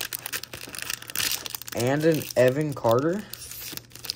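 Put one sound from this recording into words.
A foil wrapper crinkles as hands tear it open.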